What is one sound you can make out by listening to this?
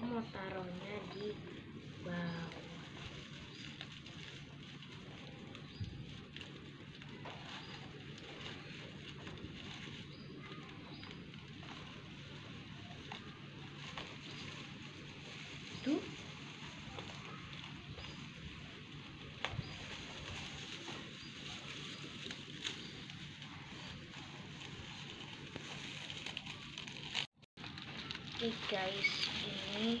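Paper and ribbon rustle and crinkle softly close by.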